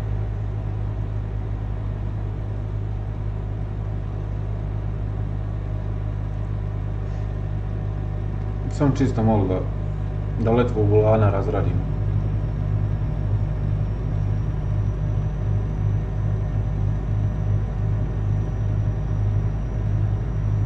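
A truck engine hums steadily and low.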